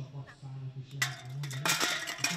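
Metal cans clatter as they are knocked over.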